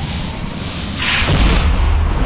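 Thunder cracks sharply overhead.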